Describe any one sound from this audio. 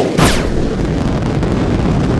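A rocket engine roars loudly.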